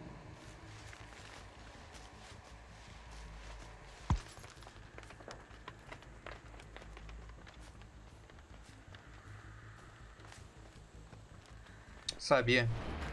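Footsteps crunch steadily.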